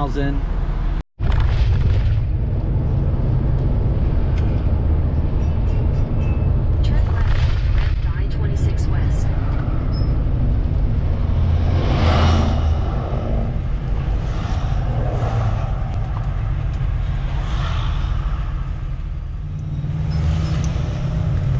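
A vehicle's engine and tyres rumble steadily from inside the cab as it drives along a road.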